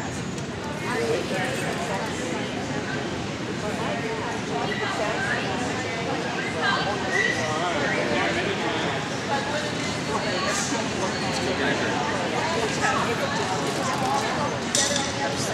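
A young man calls out commands to a dog.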